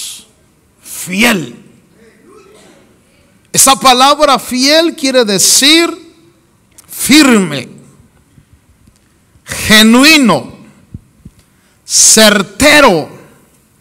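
A middle-aged man preaches passionately through a microphone in a large echoing hall, in bursts with pauses.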